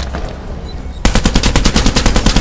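A rifle fires in a rapid burst.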